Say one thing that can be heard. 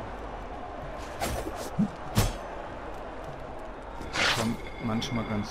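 A magic blast crackles and bursts with a whoosh.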